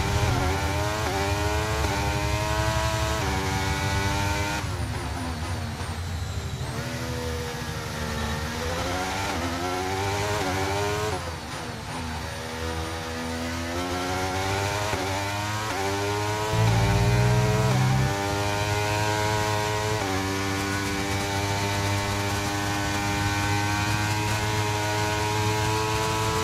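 A racing car engine revs high, rising with each gear and dropping on shifts and braking.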